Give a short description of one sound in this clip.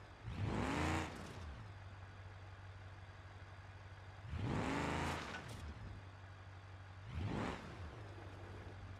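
An engine revs hard in three short, loud bursts.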